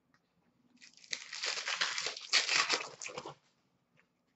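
Foil card wrappers crinkle and rustle as hands sort through them.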